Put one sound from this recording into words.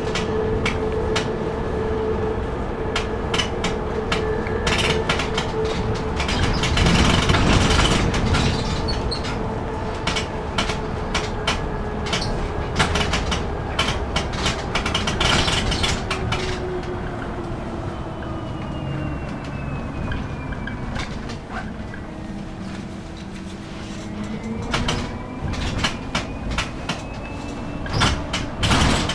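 A vehicle engine hums and whines steadily from inside while driving.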